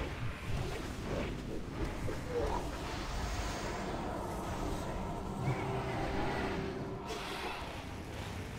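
Magic blasts crackle and boom in a noisy battle.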